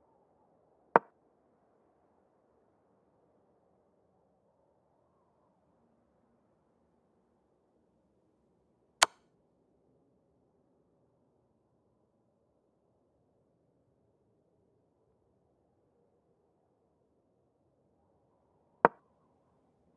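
A short wooden click sounds as a chess piece is moved, a few times.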